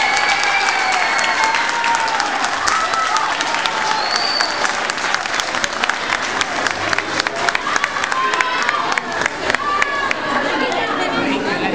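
A crowd chatters and cheers.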